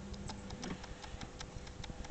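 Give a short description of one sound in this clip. A wooden tool scrapes softly against wet clay.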